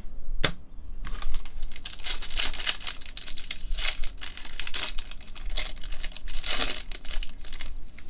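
Gloved hands tear open and crinkle the foil wrapper of a trading card pack.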